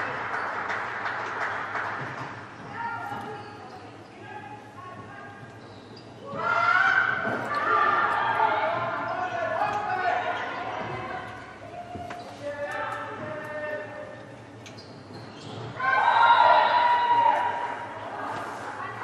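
Spectators cheer and shout in an echoing sports hall.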